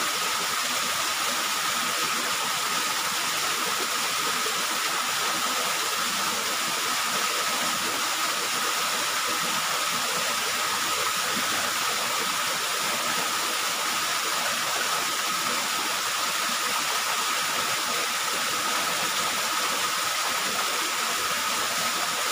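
A small waterfall splashes steadily into a pool.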